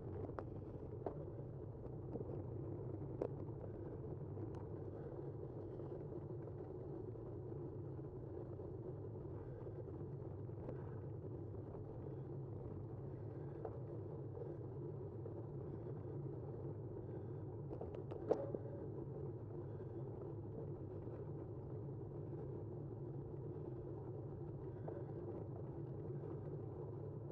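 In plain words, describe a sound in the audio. A vehicle drives steadily along a paved road with a low hum.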